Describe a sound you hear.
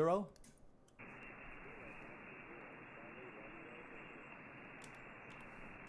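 Static hisses steadily from a radio receiver.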